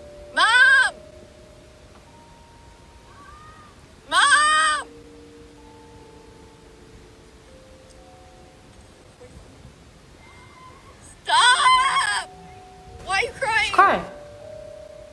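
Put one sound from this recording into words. A young woman squeals loudly in short, high-pitched bursts, close to a microphone.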